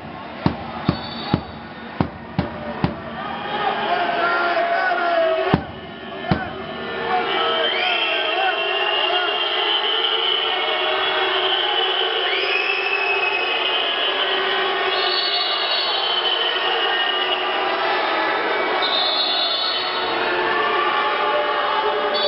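A crowd of spectators cheers and shouts loudly in a large echoing hall.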